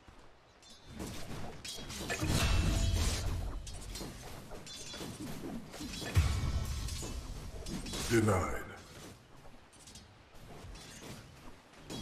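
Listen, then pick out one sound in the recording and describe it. Game creatures clash with thuds and hits.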